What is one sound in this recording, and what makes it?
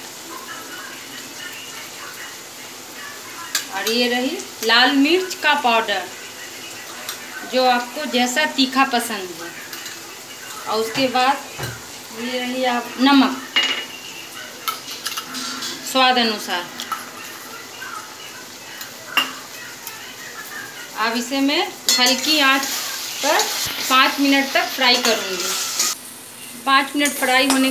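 Oil sizzles softly in a hot pan.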